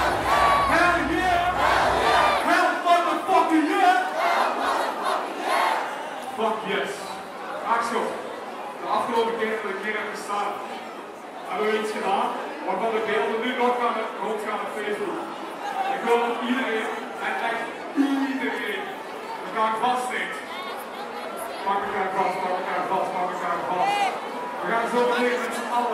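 A young man raps energetically into a microphone.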